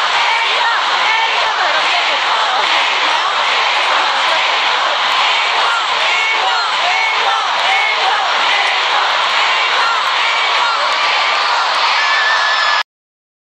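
A large crowd of young women screams and cheers loudly in a big echoing hall.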